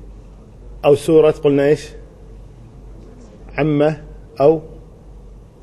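A middle-aged man speaks calmly into a close microphone, in short bursts.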